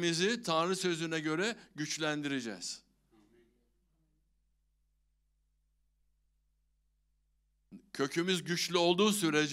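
An older man speaks with animation through a microphone, pausing briefly.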